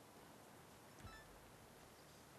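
A short notification chime sounds.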